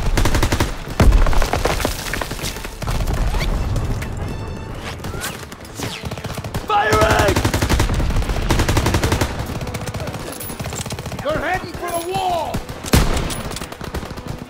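Machine guns fire in rapid bursts close by.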